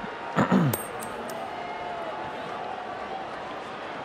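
A coin lands with a soft thud on the ground.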